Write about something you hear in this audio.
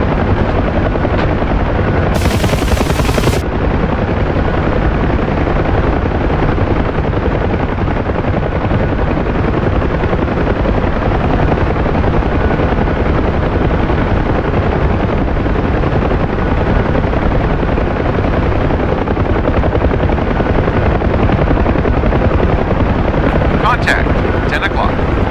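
A helicopter engine whines steadily.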